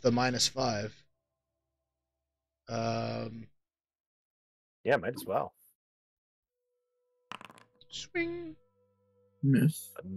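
Several men talk with animation over an online call.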